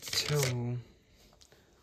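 Marbles rattle in a plastic cup.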